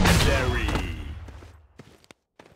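A rifle fires loud shots in a video game.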